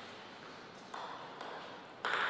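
A table tennis ball bounces lightly on a table.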